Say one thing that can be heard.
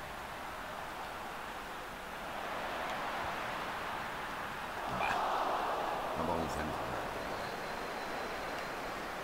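A large stadium crowd roars steadily and swells loudly for a moment.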